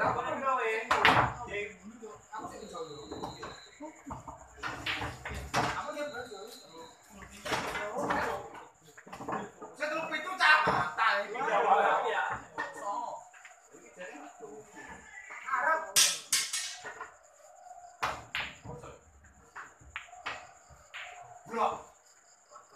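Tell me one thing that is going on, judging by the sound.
Pool balls clack together sharply.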